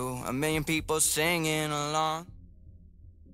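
A young man sings a melody.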